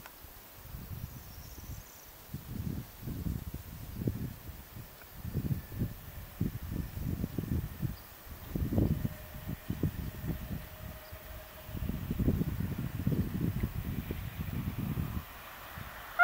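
A train rumbles along the tracks as it approaches.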